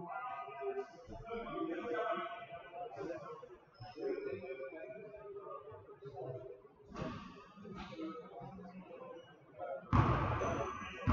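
Young people talk and call out across a large echoing gym.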